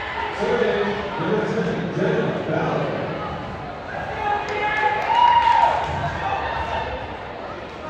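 A crowd chatters in the stands.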